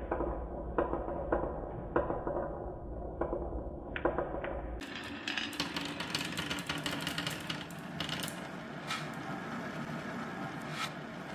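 Marbles click against each other and against wood.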